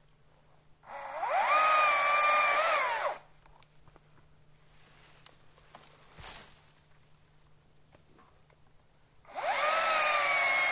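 A chainsaw cuts through a branch with a steady high whine.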